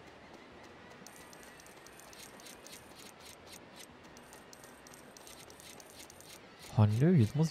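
Small coins clink and chime quickly one after another.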